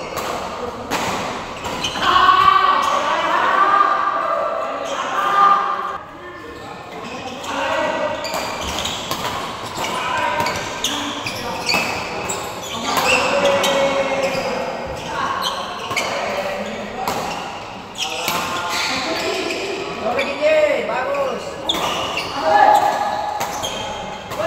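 Shoes squeak and patter on a court floor.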